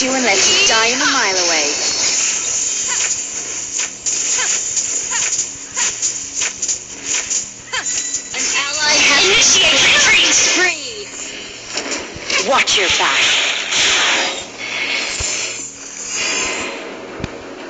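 Game spell effects whoosh and blast in quick bursts.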